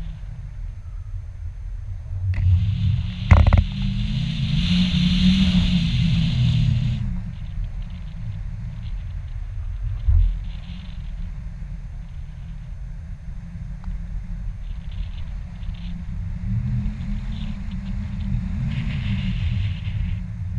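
Wind rushes steadily past a microphone high outdoors.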